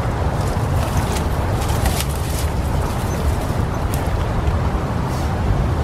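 A woven stick door creaks and rattles as it is pulled open.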